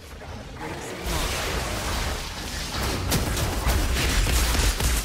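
Energy weapons fire and crackle in rapid bursts.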